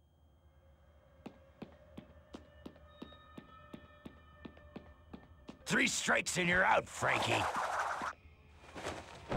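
Footsteps walk steadily on a hard floor in an echoing hall.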